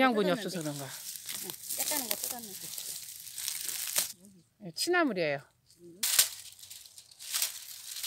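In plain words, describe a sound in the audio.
Leaves rustle as a hand handles a plant.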